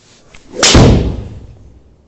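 A golf club strikes a ball with a loud, sharp smack.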